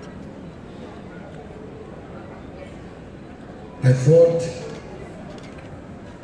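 An elderly man speaks into a microphone over loudspeakers in a large echoing hall.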